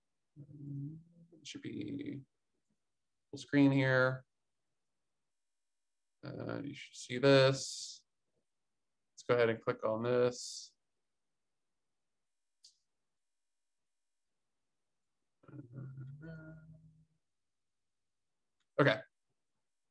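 A young man talks calmly through a microphone, in short bursts with pauses.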